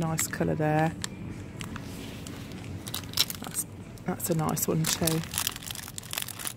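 A plastic packet crinkles in a hand.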